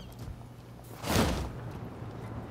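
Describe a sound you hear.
Cloth wings snap open with a sudden whoosh.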